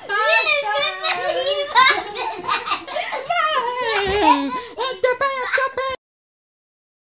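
A young girl laughs and giggles close by.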